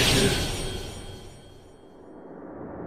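A sudden blast bursts out and quickly fades away.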